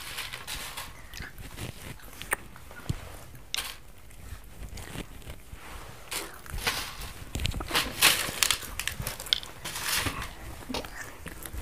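Children chew crunchy snacks up close.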